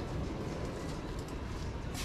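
Footsteps scuff across a concrete floor.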